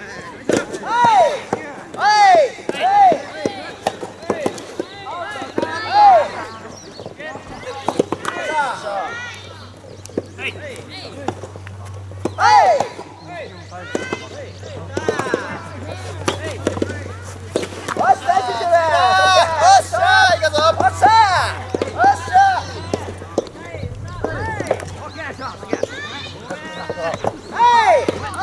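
A racket strikes a rubber soft tennis ball outdoors.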